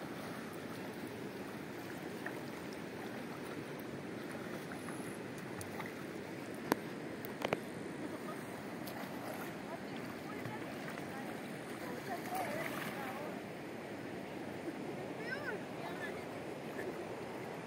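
A swimmer splashes and paddles through water.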